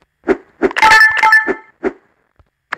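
A bright, sparkling chime rings briefly.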